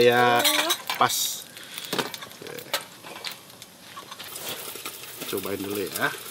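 Metal utensils clink against a pan.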